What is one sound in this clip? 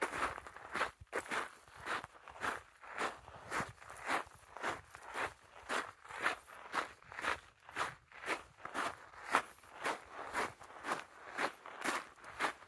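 Footsteps crunch on a gravel path at a walking pace.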